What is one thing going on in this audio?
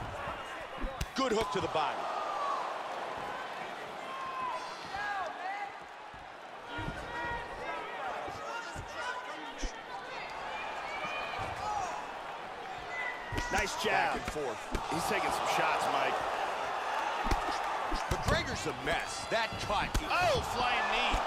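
A crowd cheers and whistles loudly throughout.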